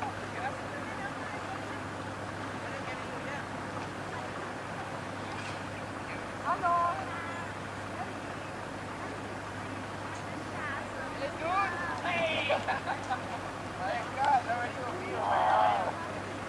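Men and women chat at a distance outdoors.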